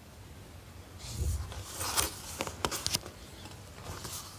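Paper pages rustle as they are turned.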